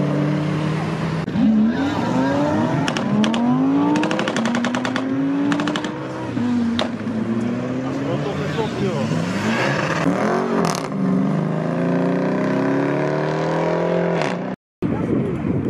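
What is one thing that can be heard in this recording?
Powerful car engines rev loudly and roar.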